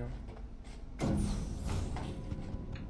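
An elevator door slides shut with a thud.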